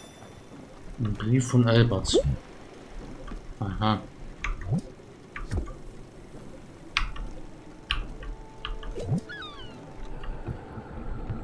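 A soft chime sounds as a game menu opens.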